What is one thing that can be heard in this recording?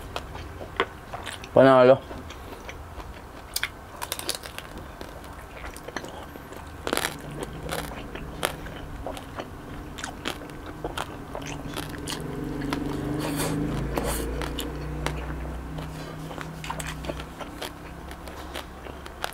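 A young man chews noisily close to a microphone.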